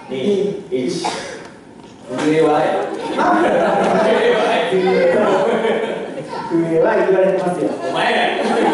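Young performers speak loudly and dramatically in a large echoing hall.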